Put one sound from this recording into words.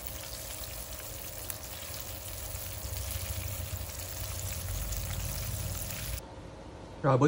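Fish sizzles and crackles as it fries in hot oil.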